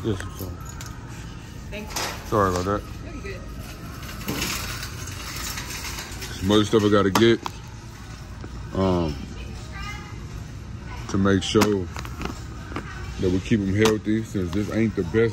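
A shopping cart rolls and rattles across a hard floor.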